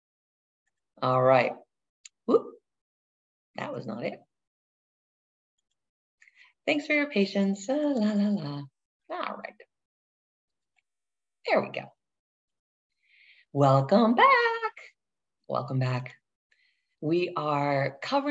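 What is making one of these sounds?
A middle-aged woman speaks with animation over an online call.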